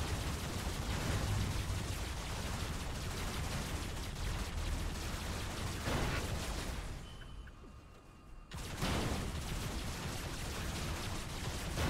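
Laser weapons fire in rapid, crackling bursts.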